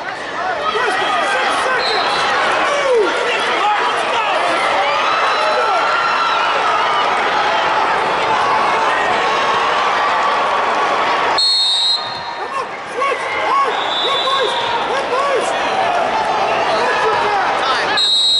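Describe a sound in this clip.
A large crowd murmurs and calls out in a big echoing hall.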